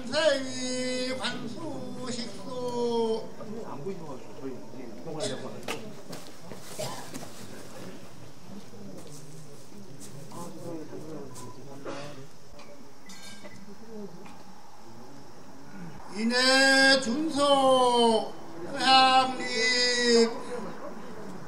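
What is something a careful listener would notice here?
A man chants in long drawn-out calls through a loudspeaker, outdoors.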